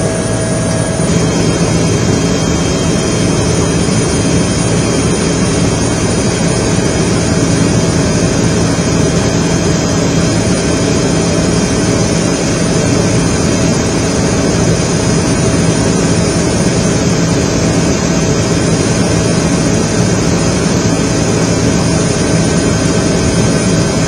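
A helicopter engine and rotor drone loudly and steadily.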